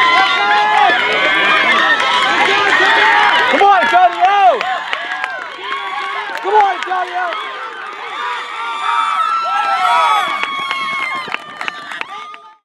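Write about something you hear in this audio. A crowd of young people cheers and shouts outdoors.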